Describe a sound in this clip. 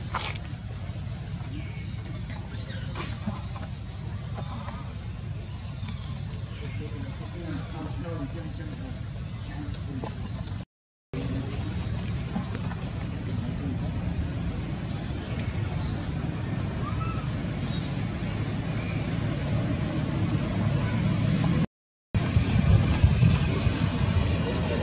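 A baby monkey squeaks in short, high cries.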